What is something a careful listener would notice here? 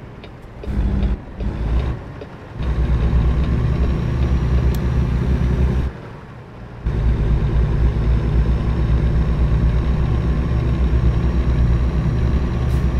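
A truck's diesel engine rumbles deeply, briefly dropping away during gear changes.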